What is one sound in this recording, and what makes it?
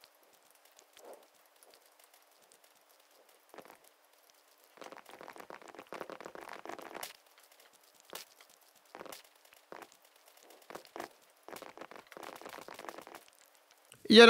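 Leaves rustle and crunch in quick bursts.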